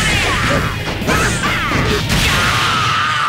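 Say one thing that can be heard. Heavy punches and kicks land with sharp, loud thuds.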